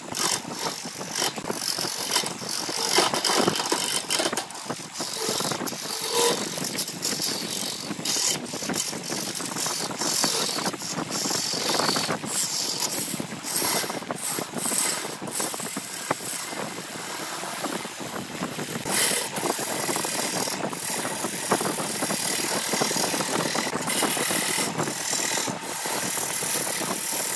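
A turning gouge cuts into spinning wood on a wood lathe, hissing and scraping.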